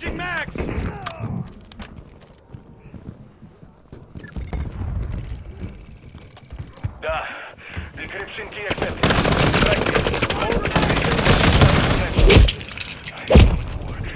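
A magazine clicks into a rifle during a reload.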